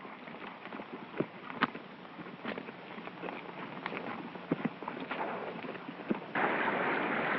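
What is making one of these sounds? Horses' hooves clop and thud on dirt.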